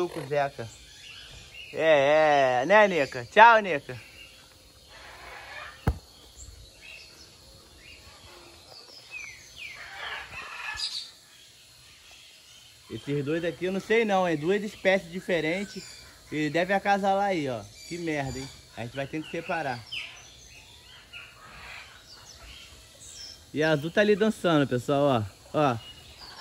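A parrot chatters and mimics speech in bursts close by.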